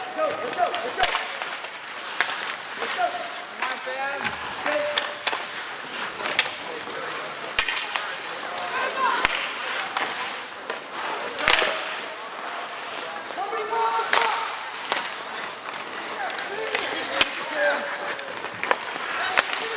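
Hockey sticks clack against the puck in a large echoing rink.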